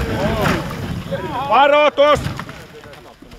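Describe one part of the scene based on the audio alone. A car crashes and tumbles with a loud thump.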